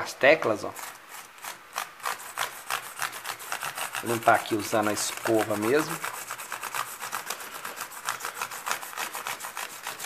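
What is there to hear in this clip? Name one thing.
A stiff brush scrubs rapidly across keyboard keys.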